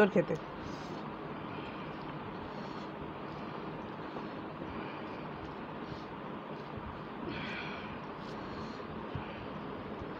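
Fingers squish and mix soft food on a plate.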